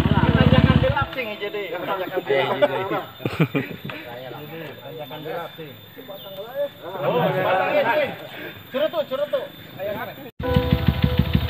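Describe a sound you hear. Several men talk and chatter nearby outdoors.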